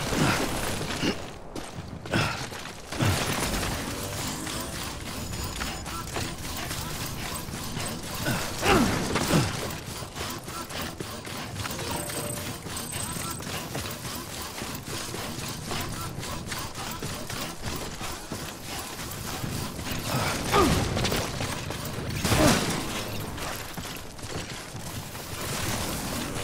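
Footsteps swish through grass and crunch on rough ground.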